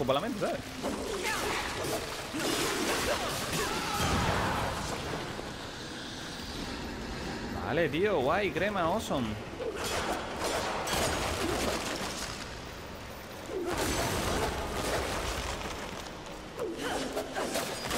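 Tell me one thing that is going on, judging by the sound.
A blade whooshes and slashes in quick swings.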